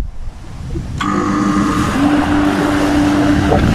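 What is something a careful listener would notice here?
An electric lawnmower whirs steadily as it runs.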